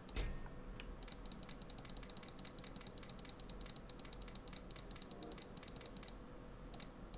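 Game interface sounds click rapidly as items are moved.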